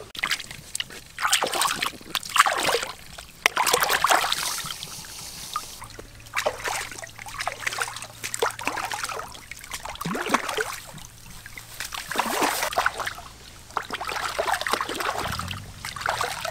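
Water splashes as fish are rinsed by hand.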